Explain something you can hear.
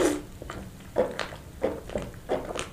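A young man gulps down a drink close to a microphone.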